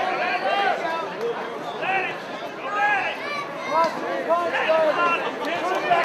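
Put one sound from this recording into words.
A crowd of men and women shouts and cheers loudly.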